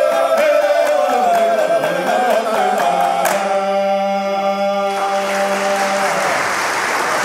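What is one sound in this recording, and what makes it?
A male choir sings in a large echoing hall.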